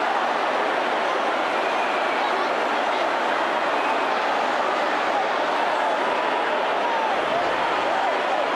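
A huge crowd cheers and chants loudly in a large echoing hall.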